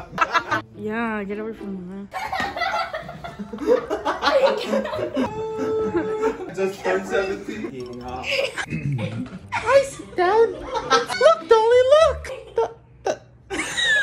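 A young man laughs and talks with animation close by.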